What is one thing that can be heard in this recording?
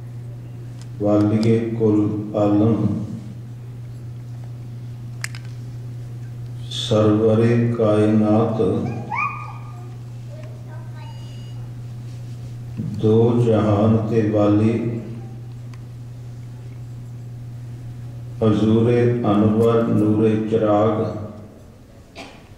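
A man chants loudly through a microphone in short phrases with pauses between them.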